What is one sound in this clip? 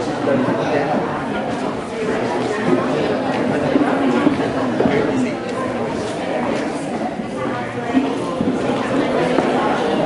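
A seated crowd of adults murmurs and chats.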